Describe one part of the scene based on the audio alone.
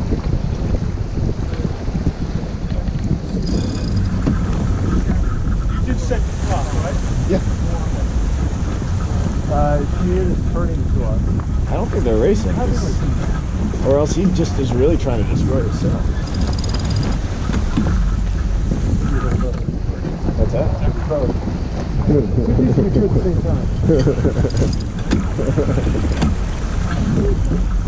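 Water rushes and splashes along a sailing boat's hull.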